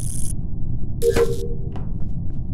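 A short chime rings out.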